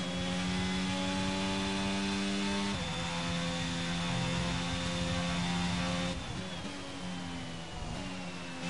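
A racing car's engine screams at high revs, shifting gears up and down.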